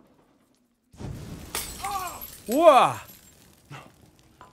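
A fire bursts into a roaring blaze.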